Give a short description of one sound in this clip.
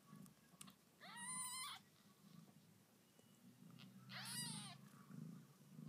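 A cat meows loudly twice, close by.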